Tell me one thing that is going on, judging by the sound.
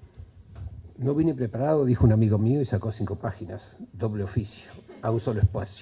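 An elderly man speaks into a microphone, heard through a loudspeaker.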